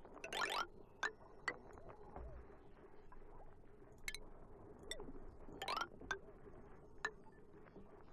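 Short soft clicks of a game menu sound now and then.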